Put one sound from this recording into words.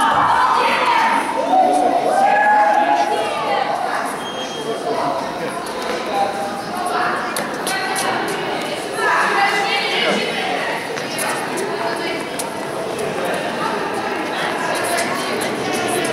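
A man speaks encouragingly to a child.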